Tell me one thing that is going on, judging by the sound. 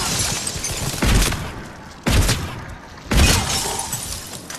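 A rifle fires loud, booming shots at intervals.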